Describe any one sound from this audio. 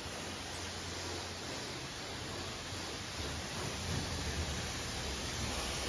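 A pressure washer sprays water onto a car with a steady hiss.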